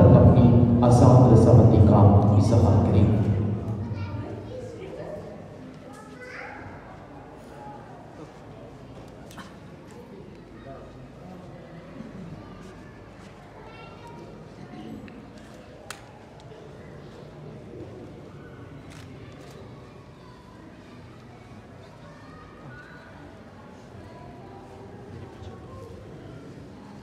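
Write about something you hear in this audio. A crowd of guests murmurs softly.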